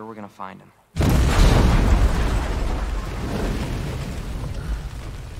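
An explosion booms and then rumbles away.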